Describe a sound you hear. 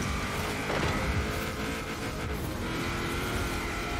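Tyres rumble over rough ground and brush through bushes.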